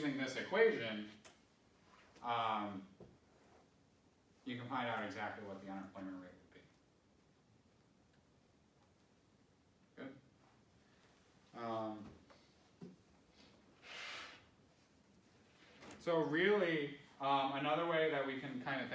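A man lectures calmly in a room, pausing between phrases.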